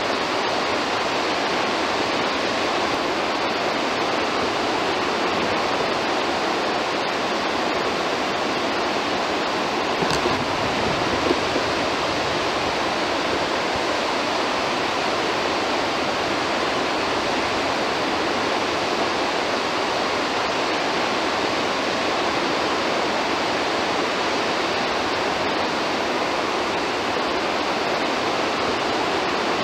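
Water roars steadily as it pours through dam spillways.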